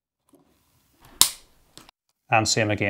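A small plastic part clicks as it is handled.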